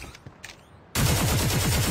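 Gunfire from a video game rattles rapidly.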